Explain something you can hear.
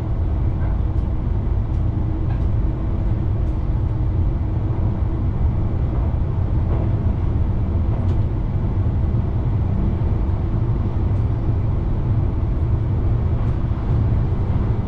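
Wheels click over rail joints.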